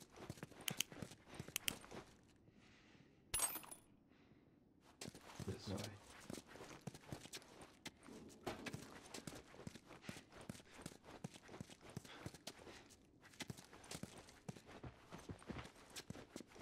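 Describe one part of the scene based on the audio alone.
Footsteps walk on a tiled floor.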